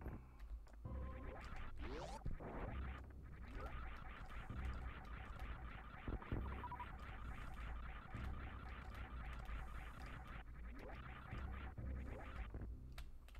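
Fast retro video game music plays with rapid electronic bleeps.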